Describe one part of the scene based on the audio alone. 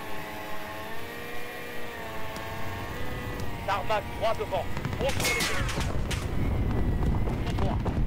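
A helicopter engine hums steadily.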